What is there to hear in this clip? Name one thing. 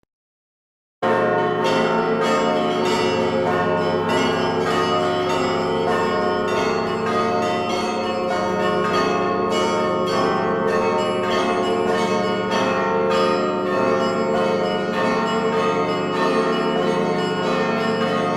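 Church bells ring in a rapid, clanging peal.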